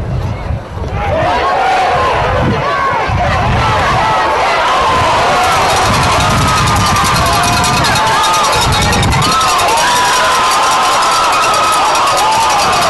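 A crowd of spectators cheers outdoors.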